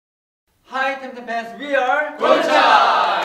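A group of young men speak together in unison close by.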